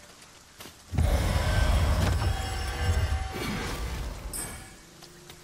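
A magic spell bursts with a loud crackling blast.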